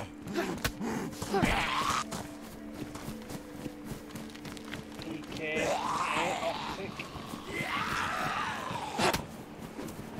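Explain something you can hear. Heavy footsteps thud quickly on hard ground.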